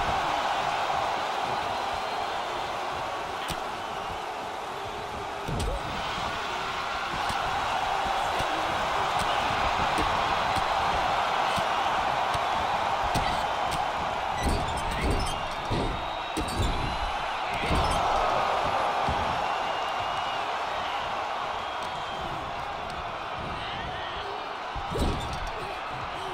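A large crowd roars steadily throughout.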